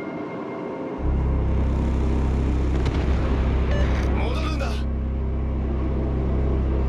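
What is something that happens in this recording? A ship's engine rumbles low and steady.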